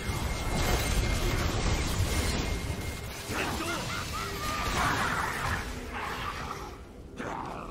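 Game spell effects whoosh and crackle in a busy fight.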